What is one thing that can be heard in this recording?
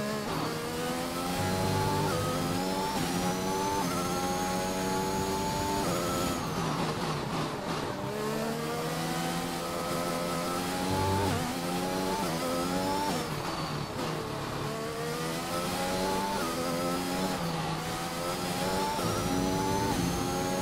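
A racing car engine screams, rising in pitch through each gear and dropping sharply at each gear change.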